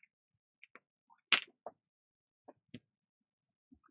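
A small plastic pen cap clicks.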